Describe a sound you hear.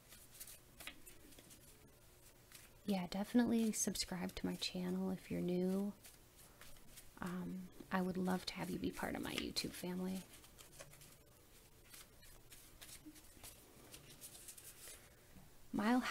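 Playing cards shuffle and riffle softly.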